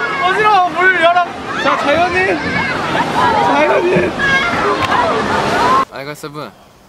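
Young men laugh and shout loudly, close by.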